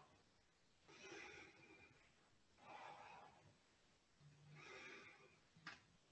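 A woman breathes out audibly.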